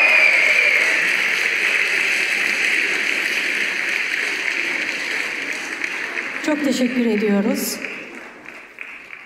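An audience applauds in a large hall and the applause slowly fades.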